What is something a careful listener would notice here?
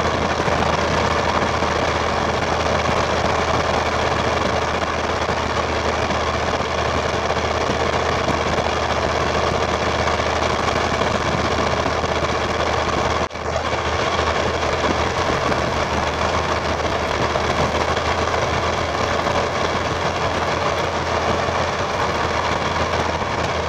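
A turbo diesel pickup with a straight exhaust rumbles under load while climbing a steep grade.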